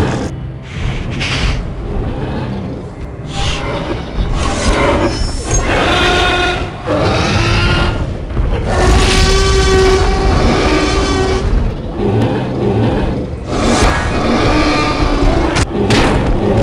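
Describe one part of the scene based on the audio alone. A large dinosaur roars loudly.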